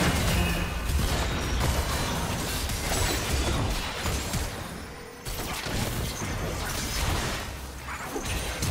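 Spells and attacks clash and crackle in a busy game fight.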